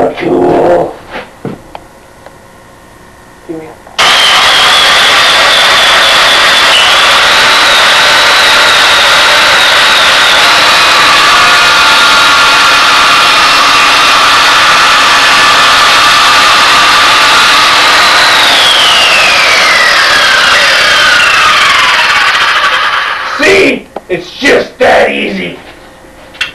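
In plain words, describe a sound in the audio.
A man growls and yells loudly nearby.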